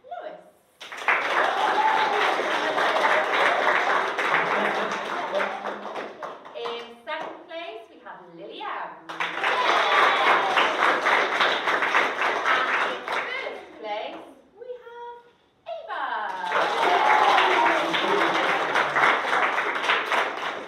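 A large group of young children shout out together in chorus.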